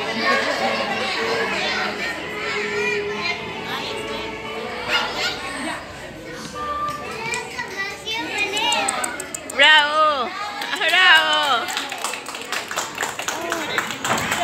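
Small children's feet shuffle and tap on a wooden stage.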